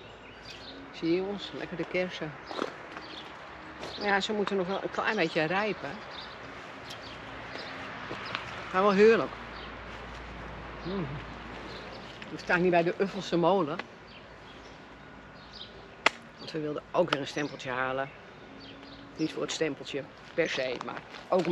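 A middle-aged woman talks calmly and close by, outdoors.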